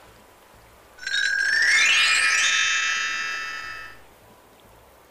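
A bright magical chime twinkles and rings out, then fades.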